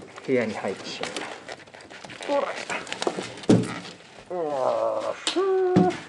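A door unlatches and swings open.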